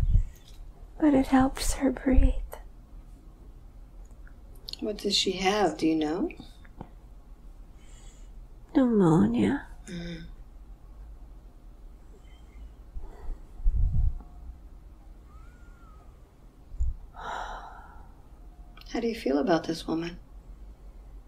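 An elderly woman groans and moans in pain close by.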